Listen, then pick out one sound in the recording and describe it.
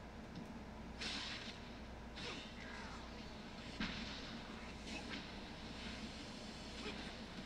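Blows land in a scuffle.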